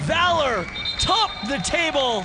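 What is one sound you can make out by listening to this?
A football is struck hard with a thud.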